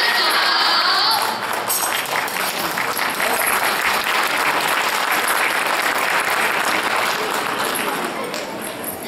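Children tap small hand drums.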